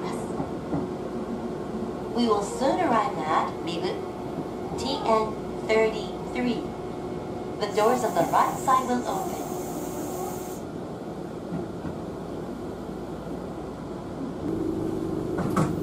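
A train rumbles steadily along its track, heard from inside a carriage.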